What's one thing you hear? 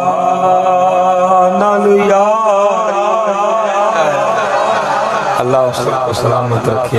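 A man sings a chant loudly into a microphone, his voice rising and falling.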